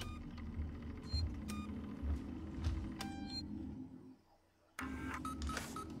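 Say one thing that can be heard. Buttons on a wall panel click as they are pressed.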